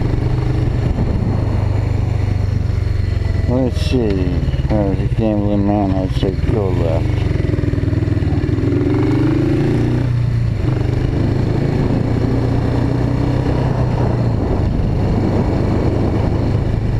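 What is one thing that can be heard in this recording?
A motorcycle engine hums steadily close by, revving up and down as it changes speed.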